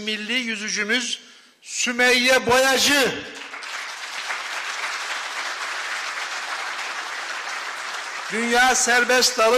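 A middle-aged man speaks steadily into a microphone, in pauses.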